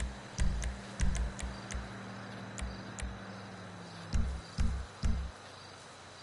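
Menu clicks tick sharply in quick bursts.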